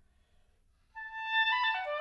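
An oboe plays a bright melody up close.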